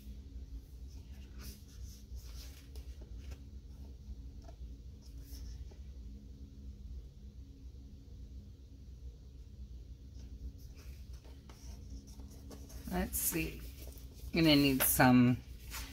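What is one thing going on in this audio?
Paper sheets rustle and flap as they are turned.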